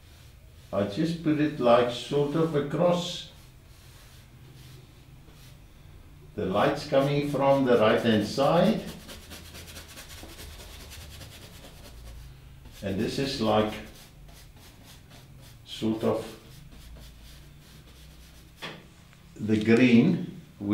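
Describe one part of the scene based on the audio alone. An elderly man talks calmly in short phrases.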